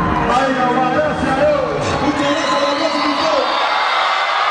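A man raps loudly through a microphone and loudspeakers.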